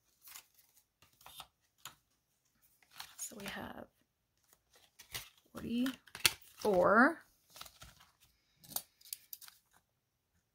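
Paper notes rustle and flap as they are handled.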